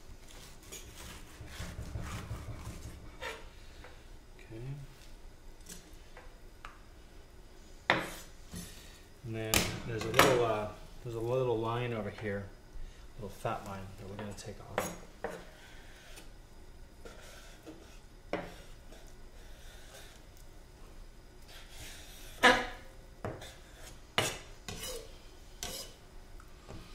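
A knife taps and scrapes against a wooden cutting board.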